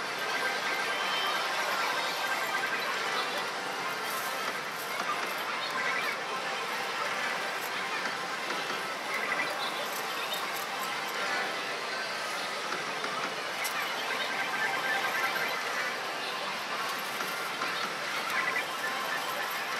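A noisy hall full of gaming machines hums and rings all around.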